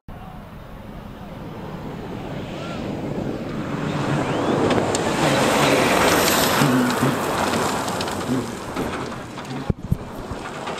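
A rally car engine roars at full throttle and grows louder as it passes.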